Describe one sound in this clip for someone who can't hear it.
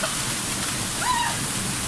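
A young woman squeals under the falling water.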